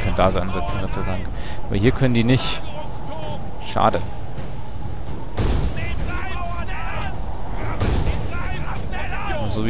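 A mass of soldiers tramps across the ground.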